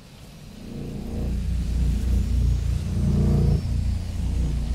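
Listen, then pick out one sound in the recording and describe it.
A deep electric hum swells up and throbs.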